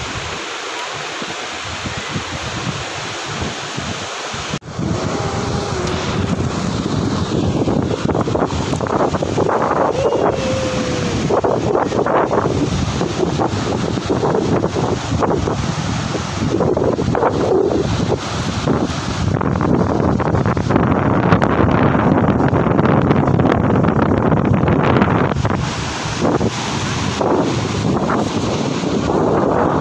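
Waves break and wash up onto a beach.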